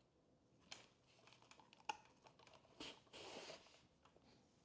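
A mandoline slicer scrapes and clicks as a vegetable is sliced.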